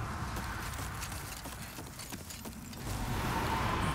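A figure climbs a wooden ladder with creaking knocks.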